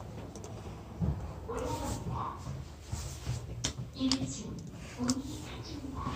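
A finger presses an elevator button with a click.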